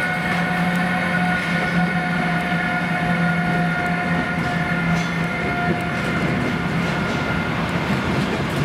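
An electric locomotive hums steadily as it passes close by.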